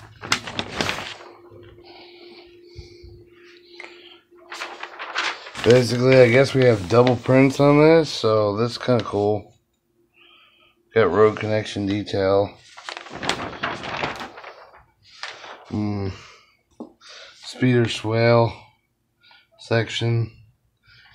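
Paper sheets rustle and flap as they are handled up close.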